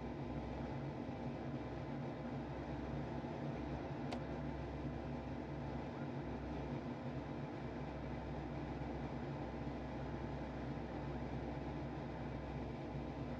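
A jet engine idles with a steady low hum.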